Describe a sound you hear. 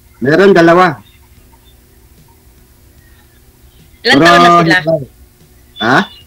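A man speaks in short, lively bursts over an online call.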